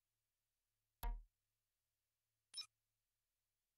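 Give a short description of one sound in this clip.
A soft electronic menu sound clicks twice.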